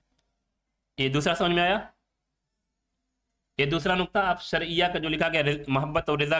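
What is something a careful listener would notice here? A man speaks calmly and with emphasis into a close microphone.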